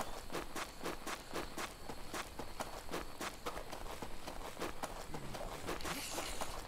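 Quick footsteps crunch on sand.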